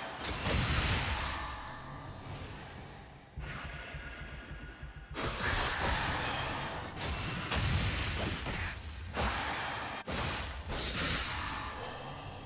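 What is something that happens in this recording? Fantasy battle sound effects crackle and boom as spells hit.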